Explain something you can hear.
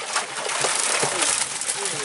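Water splashes as hands reach into it.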